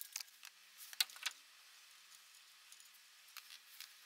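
Metal parts clink and knock as they are handled.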